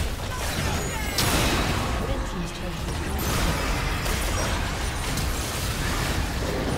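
Game spell effects blast, crackle and whoosh in a busy battle.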